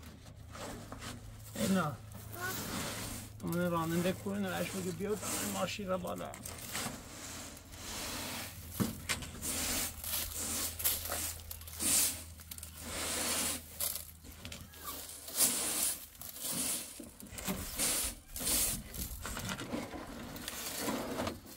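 A broom sweeps grain in brisk, scratchy strokes.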